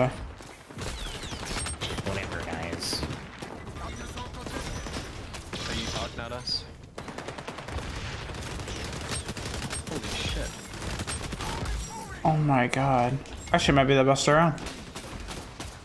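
A young man talks excitedly into a microphone.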